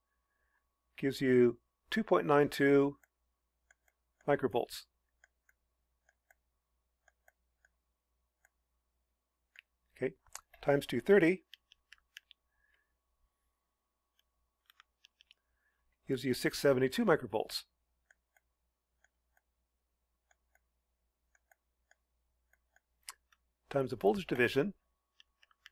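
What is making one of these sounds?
A man speaks calmly and explains in short bursts, close to a microphone, with long pauses in between.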